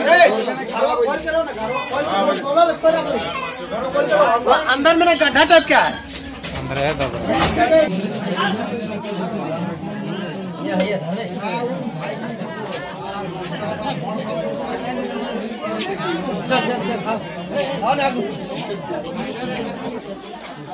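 Several adults talk over one another close by.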